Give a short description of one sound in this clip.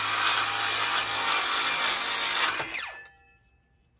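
A power circular saw whines loudly as it cuts through wood.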